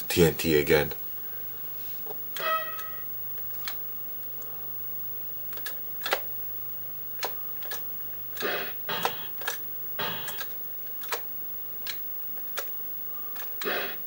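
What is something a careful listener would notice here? Electronic video game bleeps and chirps sound in short bursts.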